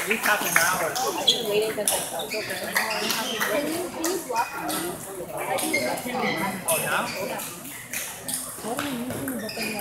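Several people chatter in the background of a large, echoing hall.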